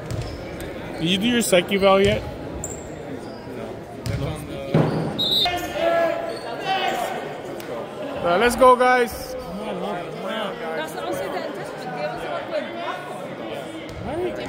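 A young woman talks and calls out nearby in a large echoing hall.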